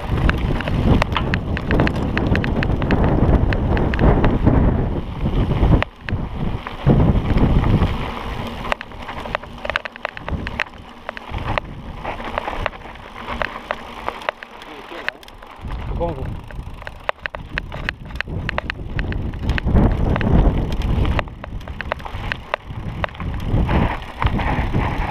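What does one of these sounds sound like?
Mountain bike tyres crunch and rattle over a rocky dirt trail.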